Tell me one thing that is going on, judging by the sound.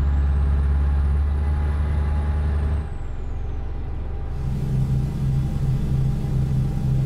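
Tyres roll along the road.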